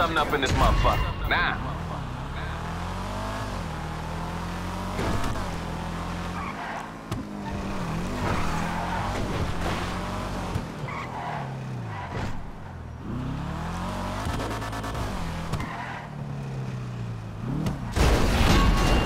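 A car engine revs and hums as a car drives along.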